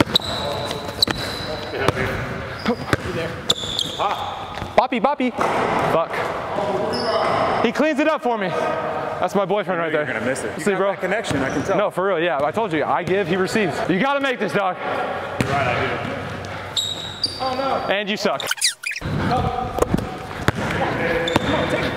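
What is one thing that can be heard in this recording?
Sneakers squeak sharply on a court.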